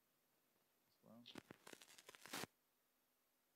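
A man laughs softly into a microphone.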